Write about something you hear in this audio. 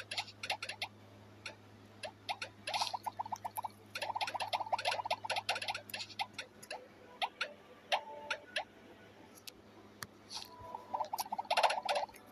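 Quick bubbly popping sounds come in bursts from a cartoon game.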